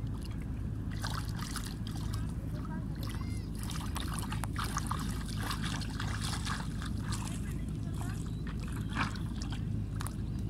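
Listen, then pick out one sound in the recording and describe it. Shallow water splashes around a small child's legs as the child wades.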